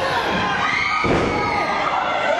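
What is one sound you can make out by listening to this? A wrestler's body slams onto the ring mat with a heavy thud.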